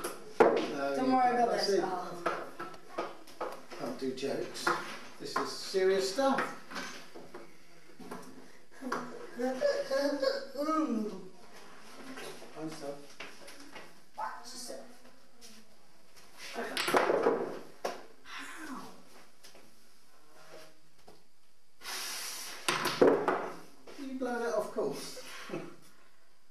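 An elderly man talks casually nearby.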